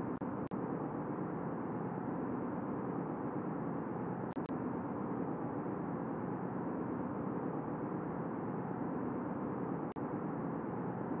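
Rocket engines roar steadily.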